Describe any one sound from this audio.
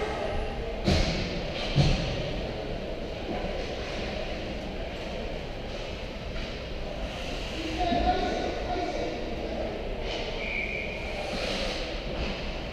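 Ice skates scrape and glide across the ice.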